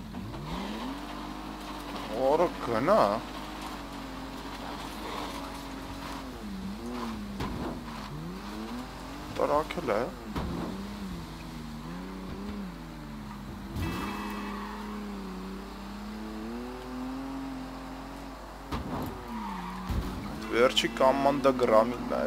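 A car engine revs and hums, rising and falling in pitch.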